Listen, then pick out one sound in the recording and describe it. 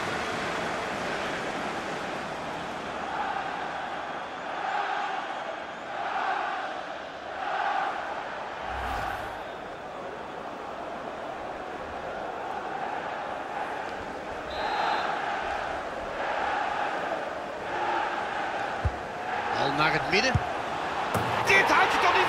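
A large stadium crowd murmurs and chants in the distance.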